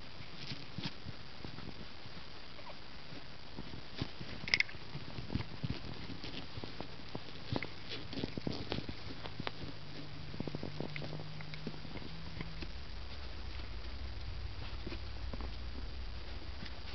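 A puppy's paws patter and scratch on a hard floor.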